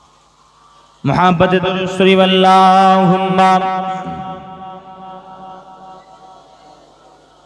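A young man sings a long, drawn-out note loudly through a loudspeaker, and it slowly fades.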